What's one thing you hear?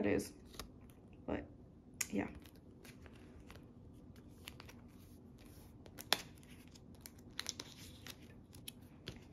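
Plastic sleeves rustle and crinkle softly.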